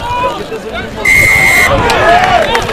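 A referee's whistle blows once, sharp and steady.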